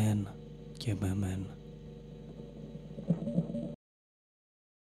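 An electric guitar plays notes through an amplifier.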